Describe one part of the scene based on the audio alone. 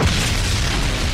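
Fire roars.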